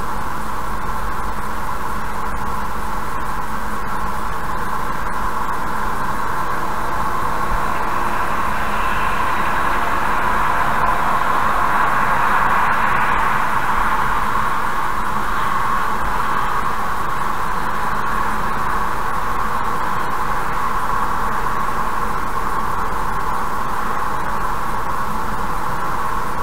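A car's engine and tyres hum steadily on a highway.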